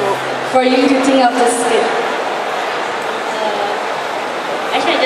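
A young woman speaks through a microphone over loudspeakers in a large echoing hall.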